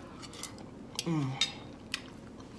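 A woman hums with pleasure while eating, close to a microphone.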